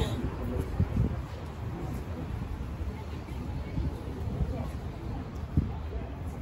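Footsteps walk along a hard outdoor platform close by.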